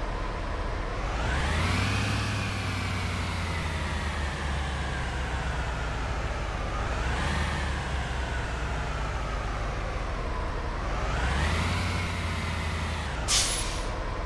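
A truck engine revs up and eases off several times.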